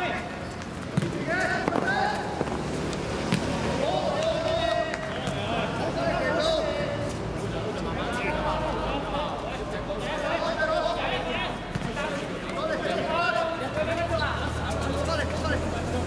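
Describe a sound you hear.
A football is kicked with a dull thump.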